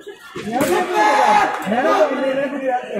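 Fencing blades clink together.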